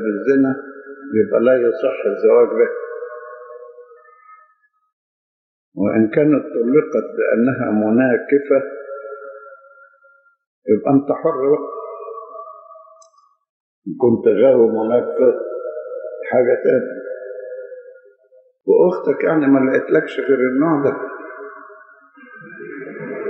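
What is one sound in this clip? An elderly man speaks slowly and calmly through a microphone, with pauses between phrases.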